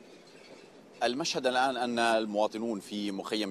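A man speaks steadily into a microphone, heard over a broadcast link.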